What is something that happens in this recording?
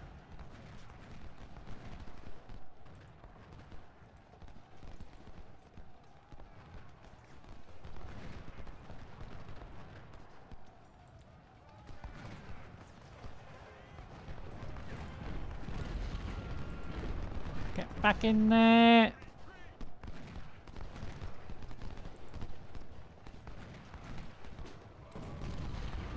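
Musket fire crackles in a distant battle.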